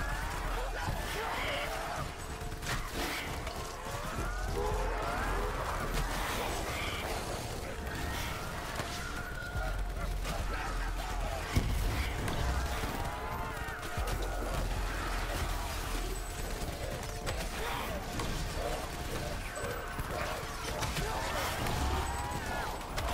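An electric weapon crackles and buzzes in bursts.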